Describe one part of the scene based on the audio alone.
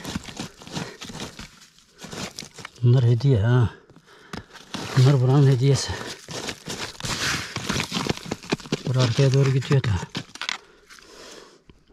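A trowel scrapes and digs into loose stony soil.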